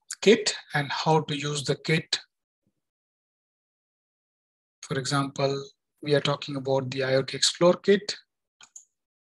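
A man speaks calmly into a headset microphone, in short bursts with pauses.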